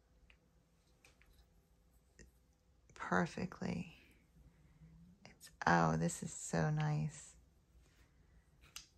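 Small plastic items click softly against a table.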